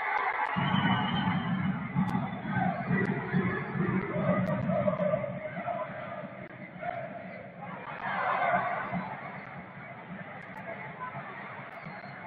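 A stadium crowd chants and cheers in a large open space.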